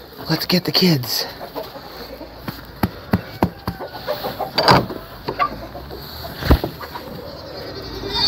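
Hooves shuffle and rustle in dry straw.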